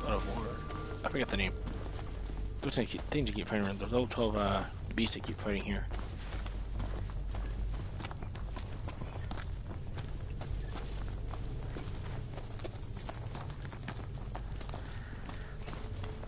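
Footsteps run through rustling undergrowth.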